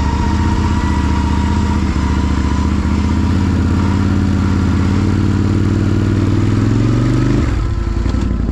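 A quad bike engine rumbles loudly and revs up while driving.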